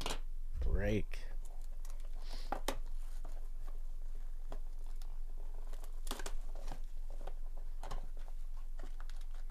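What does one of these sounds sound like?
Plastic wrap crinkles and rustles as hands tear it off a box.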